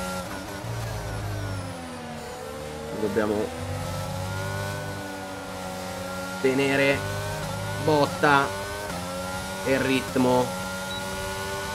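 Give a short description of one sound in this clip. A racing car engine screams at high revs, its pitch sliding up and down with the gear changes.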